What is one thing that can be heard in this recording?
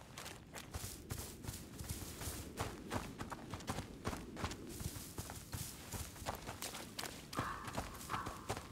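Footsteps patter on grass and dirt.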